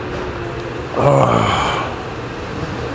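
A man exhales with satisfaction.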